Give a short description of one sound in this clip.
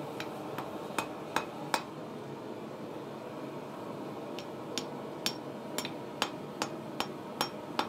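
A hammer rings sharply on hot metal against an anvil in quick, steady blows.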